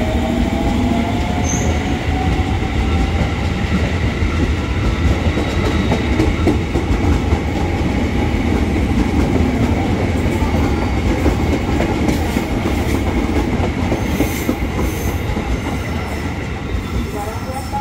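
Steel wheels clatter over rail joints.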